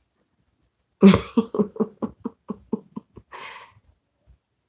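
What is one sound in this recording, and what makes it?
A middle-aged woman laughs in short bursts.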